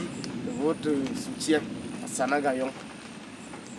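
A man speaks calmly close by.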